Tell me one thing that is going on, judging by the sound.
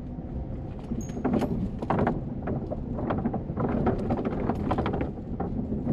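Tyres clatter and thump over wooden bridge planks.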